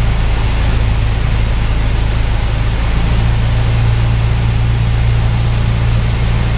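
A small plane's engine drones loudly and steadily inside the cabin.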